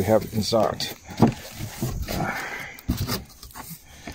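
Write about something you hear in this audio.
Hands rub and tap against cardboard and foam packing.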